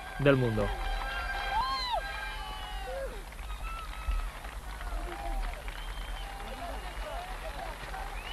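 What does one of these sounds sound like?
A large crowd cheers and whistles loudly in an open stadium.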